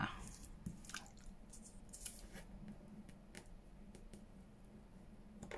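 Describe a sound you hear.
Paper rustles and crinkles under hands.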